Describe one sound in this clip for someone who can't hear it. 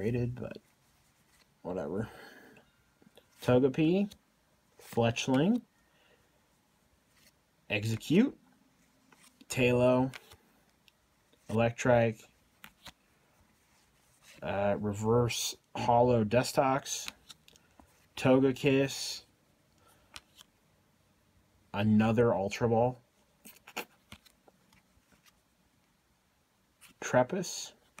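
Stiff playing cards slide and rustle against each other as they are handled.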